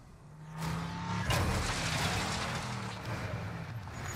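A heavy truck lands with a loud thud.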